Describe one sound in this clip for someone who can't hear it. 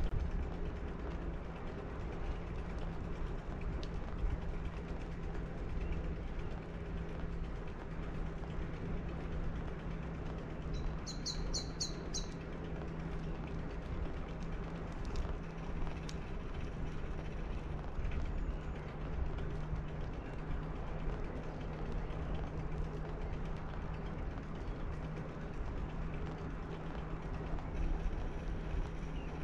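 Wheels roll steadily over smooth asphalt with a low rumble.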